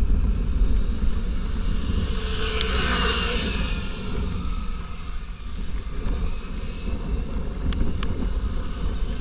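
Bicycle tyres roll over paving.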